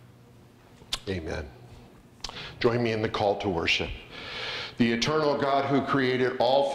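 An older man reads aloud calmly into a microphone in an echoing hall.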